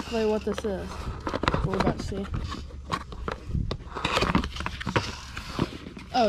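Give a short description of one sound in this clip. A small cardboard box is opened with a papery scrape.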